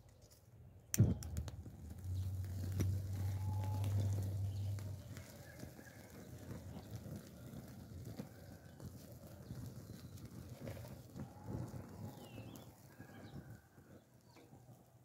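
A gas torch flame roars steadily.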